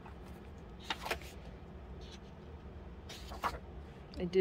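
Paper pages of a book are turned and rustle.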